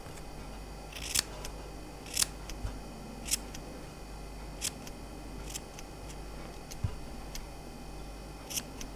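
Small scissors snip close by in quick, crisp cuts.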